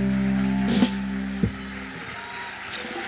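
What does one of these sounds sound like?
A band plays music that ends with a final chord.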